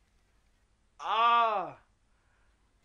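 A young woman lets out a loud, drawn-out cry.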